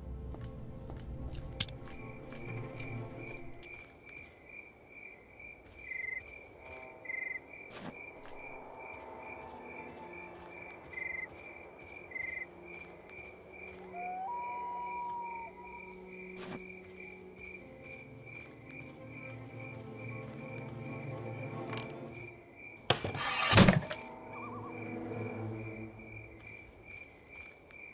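Footsteps thud on wooden boards and hard ground.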